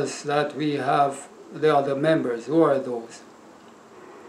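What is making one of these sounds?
An older man speaks calmly and closely into a microphone.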